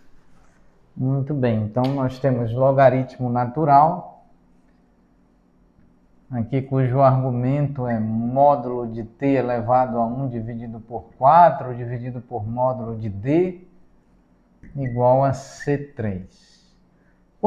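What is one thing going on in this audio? A man speaks calmly and clearly, close by, as if lecturing.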